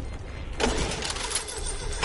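An engine starts up with a rumble.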